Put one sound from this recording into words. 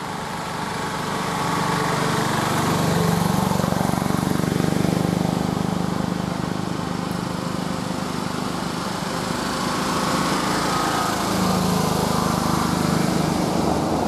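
Auto-rickshaw engines putter past close by.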